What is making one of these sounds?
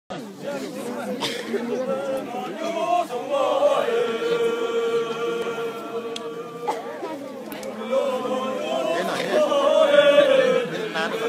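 A large group of men and women sing together in a slow, drawn-out chant outdoors.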